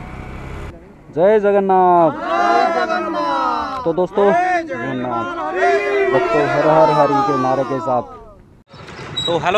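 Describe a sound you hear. A group of men chant loudly together.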